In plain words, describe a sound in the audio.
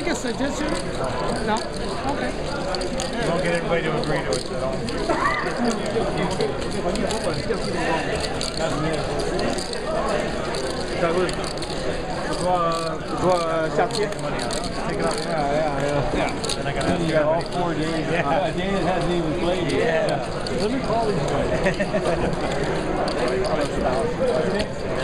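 A crowd of men and women chatters all around in a busy room.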